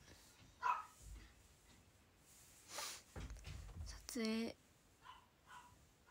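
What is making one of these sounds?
A young woman speaks softly in short bursts, close to the microphone.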